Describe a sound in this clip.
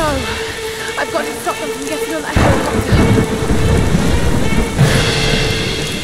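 Wind gusts and rain falls outdoors.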